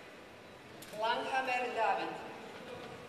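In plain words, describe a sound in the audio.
A woman speaks up briefly in a large echoing hall.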